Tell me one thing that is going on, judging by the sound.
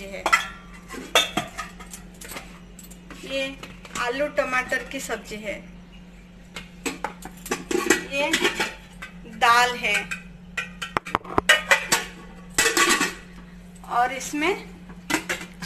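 A metal lid clinks against a steel pot.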